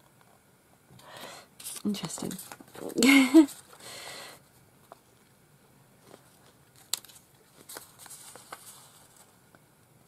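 Paper cards rustle and slide against each other as they are shuffled.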